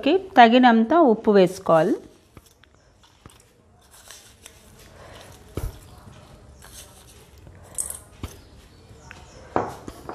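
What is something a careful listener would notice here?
A spoon clinks against a small bowl.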